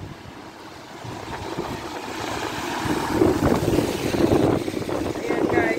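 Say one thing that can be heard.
A car's tyres hiss as it drives past on a wet road.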